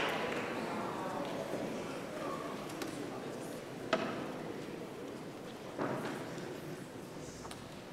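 A choir sings softly in a large echoing hall.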